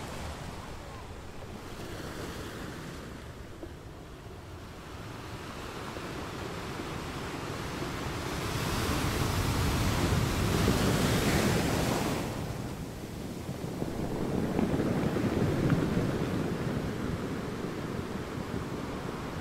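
Sea water washes and hisses over rocks.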